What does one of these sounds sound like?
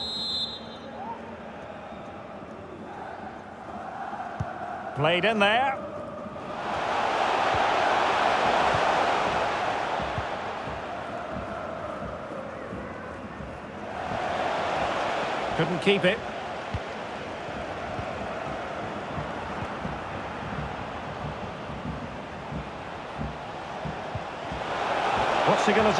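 A large stadium crowd cheers and roars steadily, swelling loudly at times.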